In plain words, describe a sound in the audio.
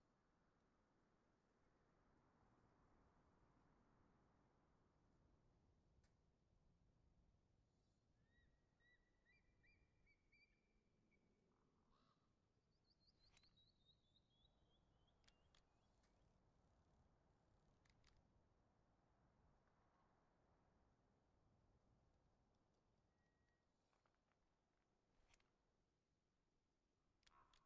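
Soft, gentle game menu music plays quietly throughout.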